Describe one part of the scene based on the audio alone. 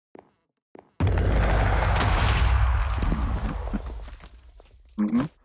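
A loud roaring blast bursts out and slowly fades.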